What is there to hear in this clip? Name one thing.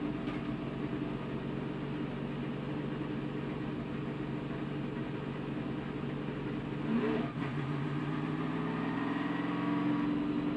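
A race car engine drones loudly from inside the car.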